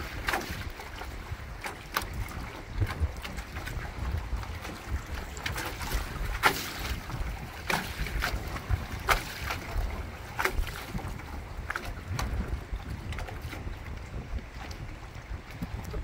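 Choppy water slaps against a small boat and dock posts.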